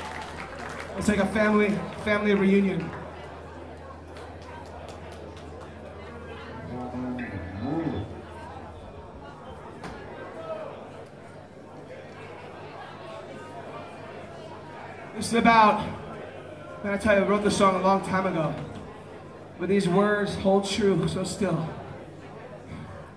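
A man shouts loudly into a microphone through loudspeakers in a large echoing hall.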